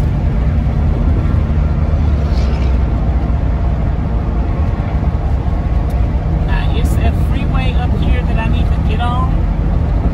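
A car engine and tyres rumble steadily from inside a car moving fast on a highway.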